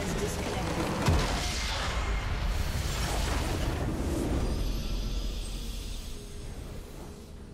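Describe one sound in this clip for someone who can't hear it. A loud explosion booms and rumbles, then fades away.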